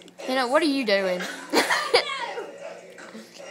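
A young girl shrieks and laughs loudly close by.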